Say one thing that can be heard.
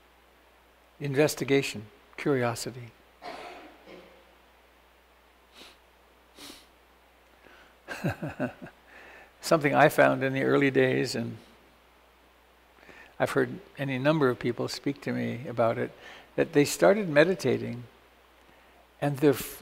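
An elderly man speaks calmly into a close microphone, pausing now and then.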